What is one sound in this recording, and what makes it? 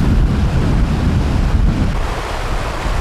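A river rushes over stones.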